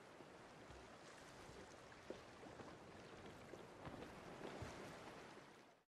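Rough sea waves surge and crash steadily.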